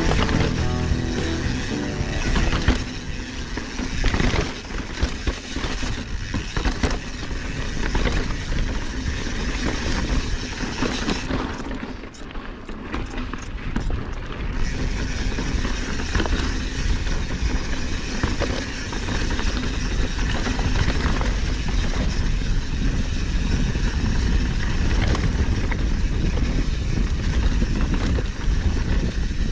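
Bicycle tyres crunch and rattle over rocky dirt.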